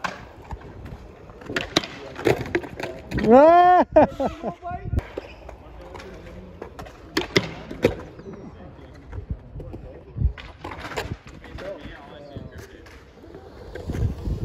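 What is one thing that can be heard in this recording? A skateboard clacks and knocks against the ground and a rail.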